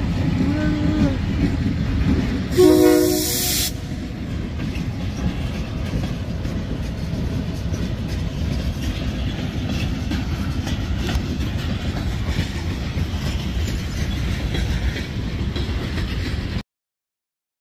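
A freight train rumbles and clatters steadily along the tracks close by.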